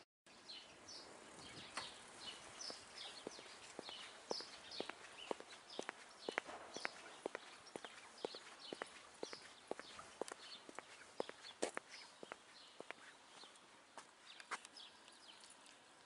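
Footsteps tap steadily on a paved path.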